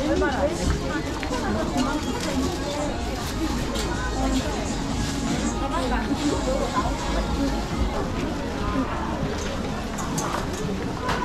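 A crowd of shoppers chatters all around in a busy indoor hall.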